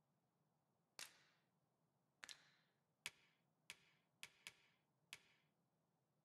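Short soft clicks sound one after another.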